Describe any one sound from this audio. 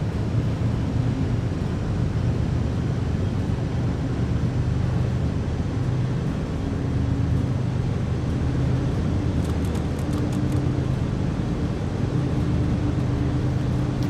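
Train wheels roll and clatter on the rails.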